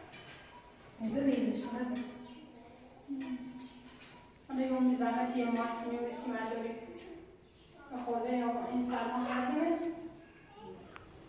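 A middle-aged woman talks close by.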